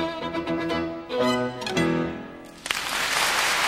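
A violin plays a melody up close and ends on a final note.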